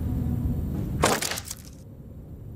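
A wooden crate smashes apart with a loud crash.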